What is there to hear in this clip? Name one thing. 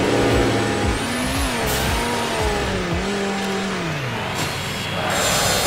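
A video game car engine revs and whines, rising and falling in pitch.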